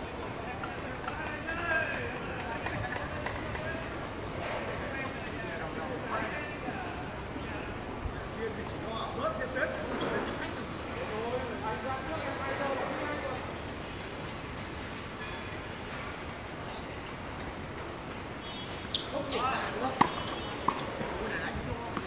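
Tennis rackets strike a ball outdoors.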